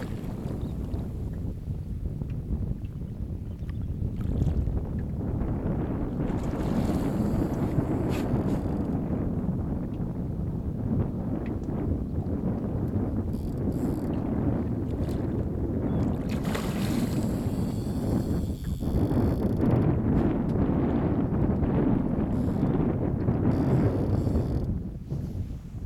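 Wind blows steadily across open water outdoors.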